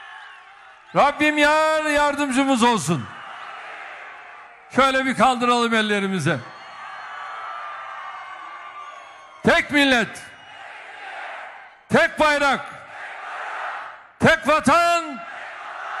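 A large crowd chants loudly in unison in short bursts.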